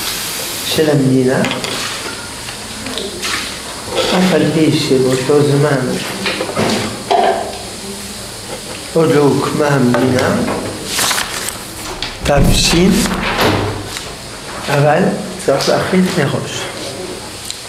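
An elderly man speaks calmly and steadily, close to a microphone.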